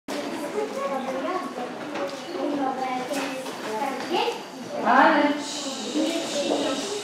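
Young children chatter.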